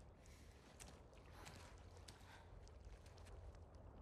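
Footsteps approach on a hard floor.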